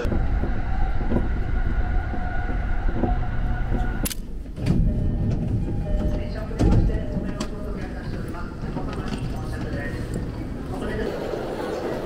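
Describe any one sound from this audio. A train rumbles and hums along the tracks.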